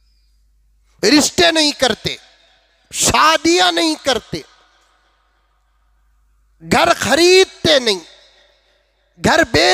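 An elderly man speaks forcefully into a close microphone, in short bursts with pauses.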